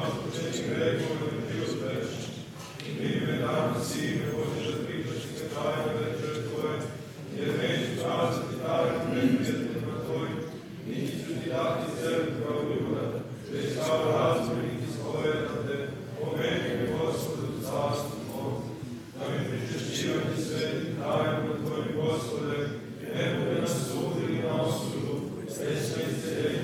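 An elderly man chants steadily in a resonant, echoing room.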